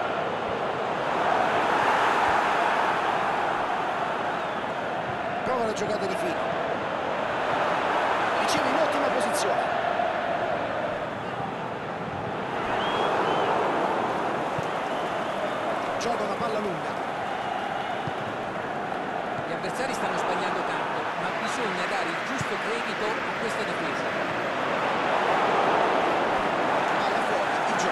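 A large stadium crowd roars and chants, swelling and falling in waves.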